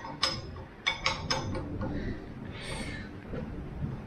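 A wrench turns a bolt with a ratcheting click.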